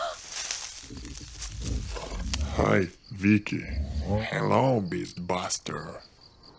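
Creatures growl and snarl loudly.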